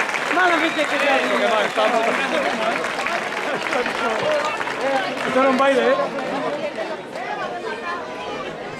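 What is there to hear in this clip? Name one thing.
A crowd of men and women chatters and calls out nearby, outdoors.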